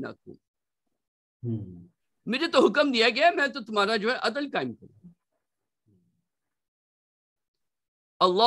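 A man recites in a melodic voice over an online call.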